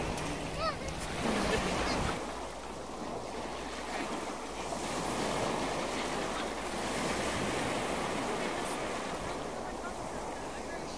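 A paddle dips and splashes in the water.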